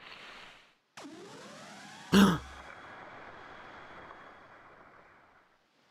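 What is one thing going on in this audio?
A magical whoosh swells and fades with a sharp burst.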